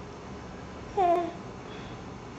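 A baby lets out a short, high squeal up close.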